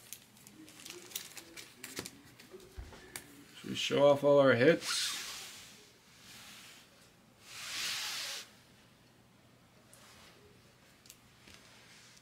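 Hard plastic card cases click and clack as they are handled and set down on a table.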